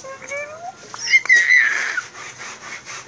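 A young woman squeals with excitement.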